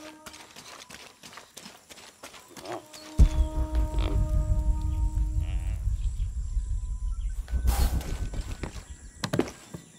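Footsteps run over packed dirt.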